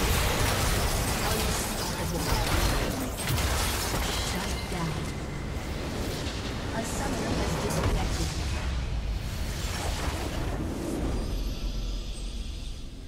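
Magic blasts and impacts crash in a busy battle.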